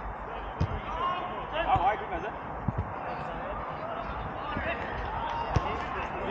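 Men shout and call out to each other across an open pitch.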